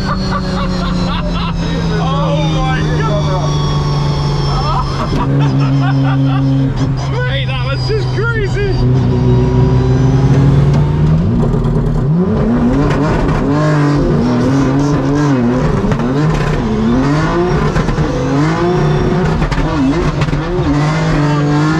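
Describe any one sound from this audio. A race car engine roars loudly from inside the cabin.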